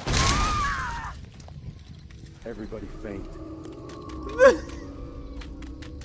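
Flames burst and crackle.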